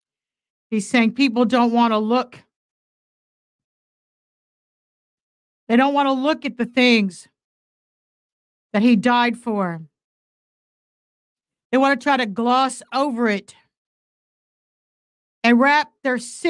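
An elderly woman speaks slowly and with feeling into a close microphone, pausing between phrases.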